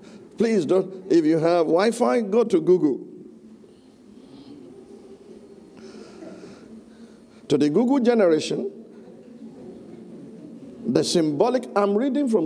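A man speaks into a microphone with animation, in a room with some echo.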